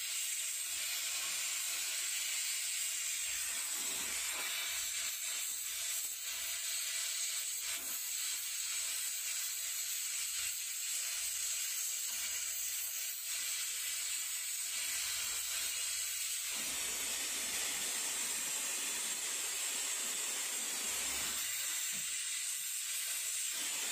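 A cutting torch hisses steadily against metal.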